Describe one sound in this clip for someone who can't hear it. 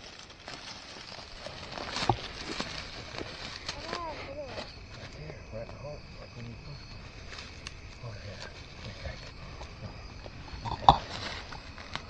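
Dry crop stalks rustle and crackle as people move through them.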